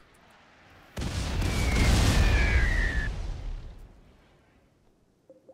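A meteor crashes down with a loud, roaring impact that slowly fades.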